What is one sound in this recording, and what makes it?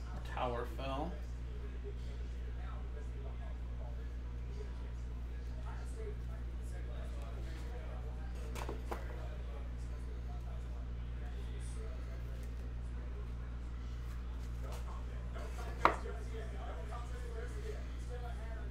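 Cards rustle and click as hands sort them.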